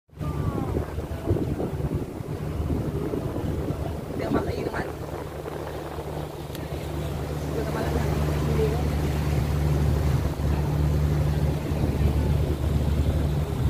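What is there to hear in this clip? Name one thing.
A boat engine hums steadily and low.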